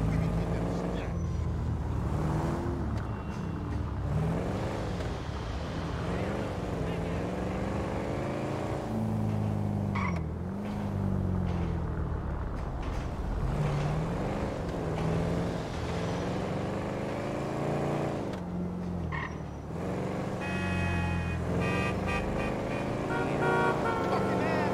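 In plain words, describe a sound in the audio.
A car engine revs up and down as the car accelerates and slows.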